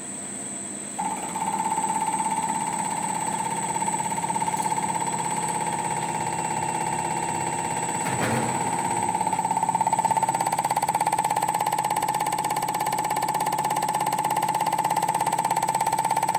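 A machine hums and buzzes steadily.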